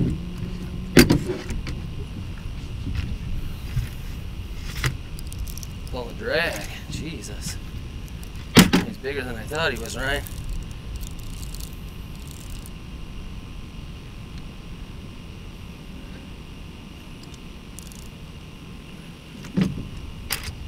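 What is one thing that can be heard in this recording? Objects knock and thump against a small boat's hull.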